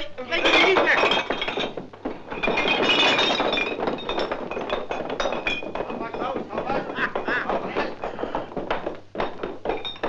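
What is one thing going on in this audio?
A heavy wooden board scrapes and bumps on a staircase.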